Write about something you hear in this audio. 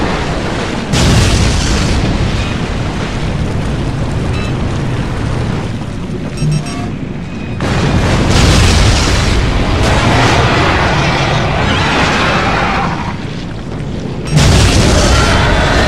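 A weapon fires electric crackling blasts.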